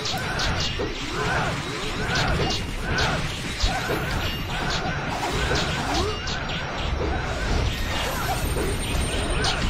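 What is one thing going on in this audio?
Battle sound effects clash and crackle in a game.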